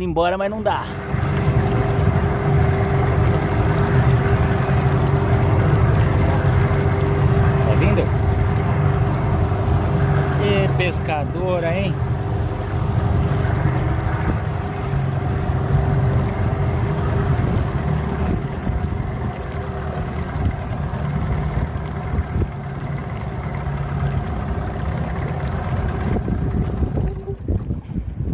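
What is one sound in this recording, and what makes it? A boat's outboard motor hums steadily.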